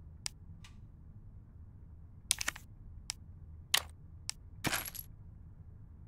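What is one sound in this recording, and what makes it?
Short menu clicks and beeps sound.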